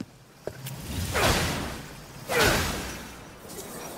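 A whooshing rush sweeps past twice.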